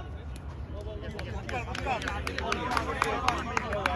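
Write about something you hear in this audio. A cricket bat hits a ball with a sharp knock.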